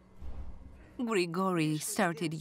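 An older woman speaks quietly and sadly nearby.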